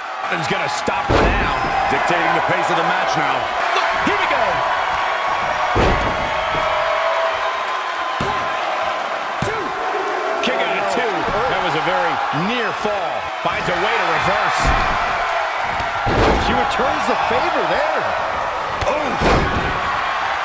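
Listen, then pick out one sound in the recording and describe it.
Bodies slam heavily onto a wrestling ring mat with loud thuds.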